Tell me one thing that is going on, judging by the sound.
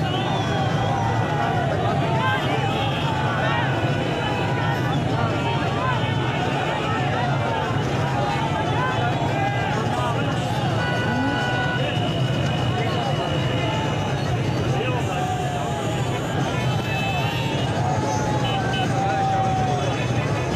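Car horns honk repeatedly.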